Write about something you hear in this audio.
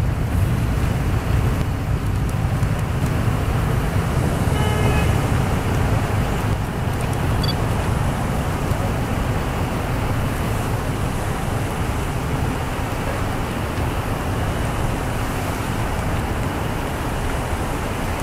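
Police vehicles drive past one after another, with engines rumbling and tyres hissing on the road.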